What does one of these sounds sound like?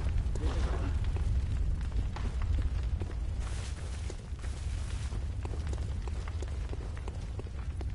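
Footsteps crunch quickly over the ground.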